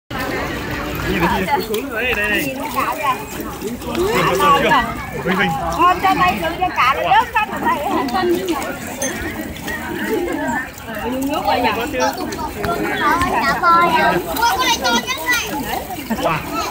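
Young children chatter and call out excitedly nearby.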